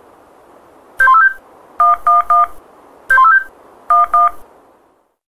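A mobile phone beeps in short electronic tones as its buttons are pressed.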